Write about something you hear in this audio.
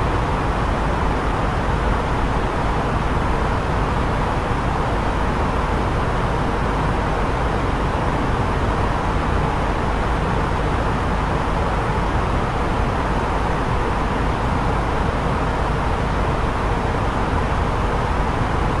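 Jet engines and rushing air roar steadily.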